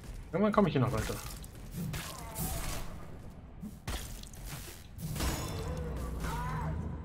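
Gunfire and metallic impacts crackle from a video game.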